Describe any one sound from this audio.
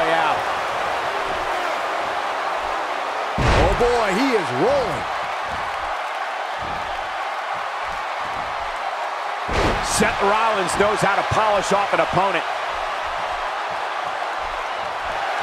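A large arena crowd cheers.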